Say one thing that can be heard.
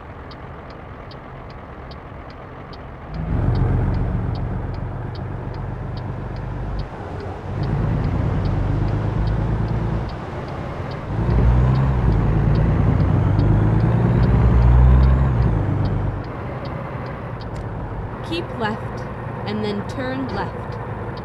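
A truck engine rumbles and revs up and down in waves.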